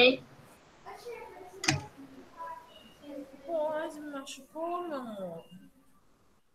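A child speaks over an online call.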